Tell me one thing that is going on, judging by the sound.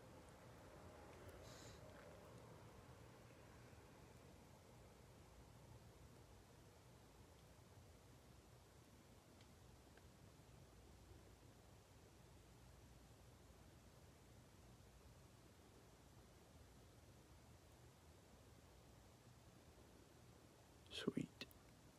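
A plastic wrapper crinkles and rustles in a hand.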